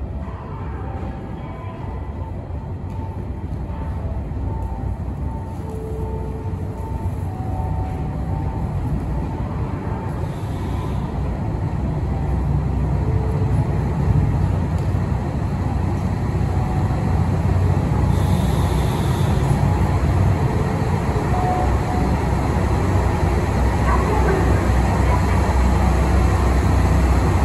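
A diesel train rumbles slowly closer, growing louder as it approaches.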